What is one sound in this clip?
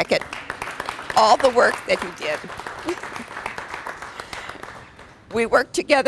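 A small crowd claps and cheers.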